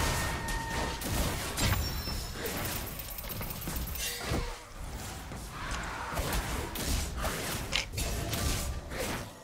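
Fantasy combat sound effects clash and burst in quick succession.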